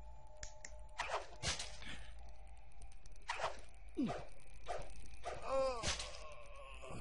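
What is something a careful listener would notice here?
Weapon blows strike in a fight with sharp impacts.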